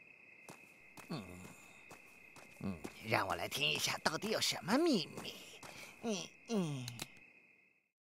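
A cartoon man speaks with animation in a high, comic voice.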